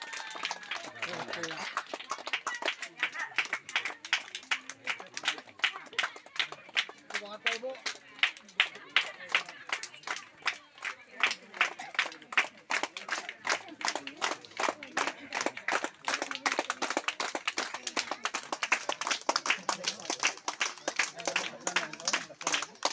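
A crowd claps along in a steady, quick rhythm.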